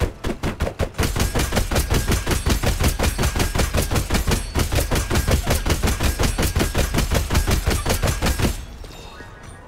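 Rapid punching and clashing sounds from a video game beat fast and steadily.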